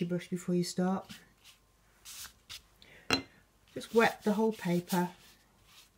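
A paintbrush taps sharply, flicking drops of paint.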